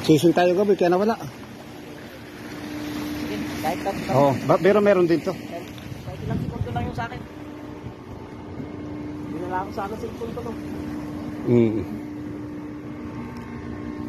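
A boat's engine hums steadily.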